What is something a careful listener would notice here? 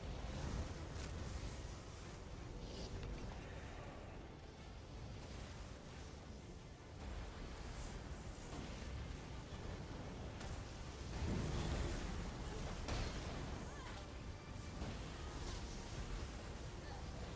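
Magic spells blast and crackle in a fantasy battle.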